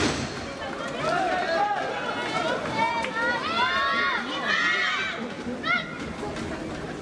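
Young women call out loudly to each other.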